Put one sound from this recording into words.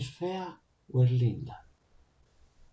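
A middle-aged man speaks briefly through an online call.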